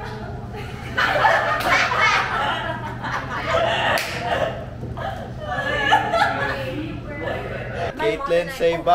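Young people laugh loudly together.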